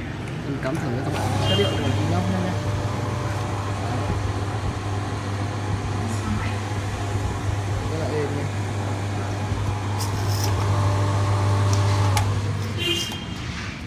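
An electric motor hums steadily as a metal drum spins.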